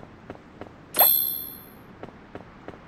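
A bright chime rings out once and fades.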